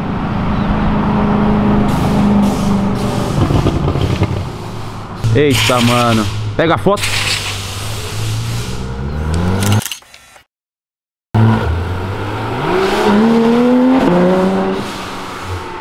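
A sports car engine revs loudly and roars past.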